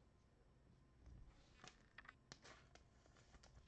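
Trading cards rustle and tap softly as they are handled and set down.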